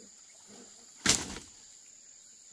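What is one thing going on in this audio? A long bamboo pole falls and thuds onto the ground.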